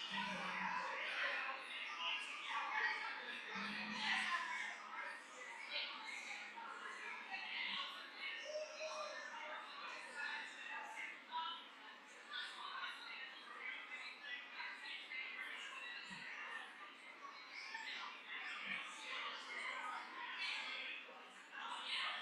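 A crowd of men and women talks and mingles at once in a large echoing hall.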